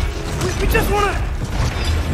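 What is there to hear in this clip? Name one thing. A huge beast lets out a high, wavering howl.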